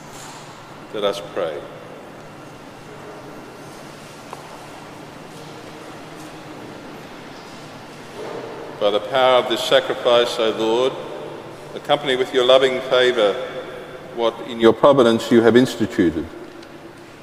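An elderly man speaks slowly through a microphone in a large echoing hall.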